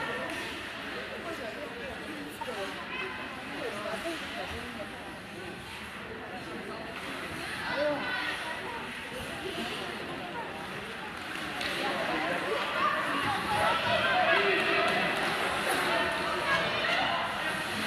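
Skates scrape and glide on ice in a large echoing arena.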